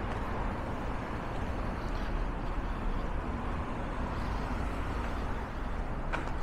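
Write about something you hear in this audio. Cars drive by on a nearby street with a steady hum.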